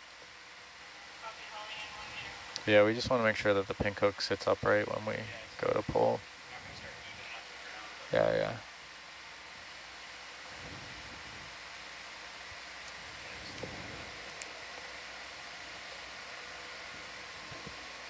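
An underwater vehicle's motors hum steadily.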